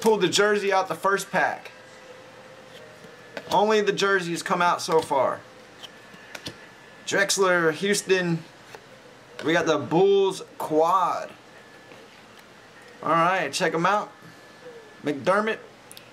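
Trading cards rustle and slide against each other as they are handled.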